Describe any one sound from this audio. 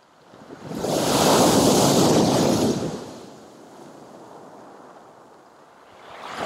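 Surf washes and rumbles over pebbles.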